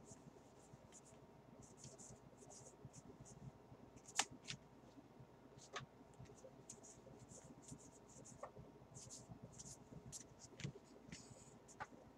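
Trading cards shuffle and flick against each other in a hand.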